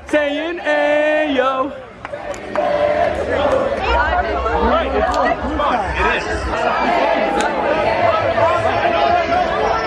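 A crowd of young men and women sings along loudly without music.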